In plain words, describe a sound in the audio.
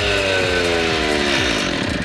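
A power cutter saw winds down.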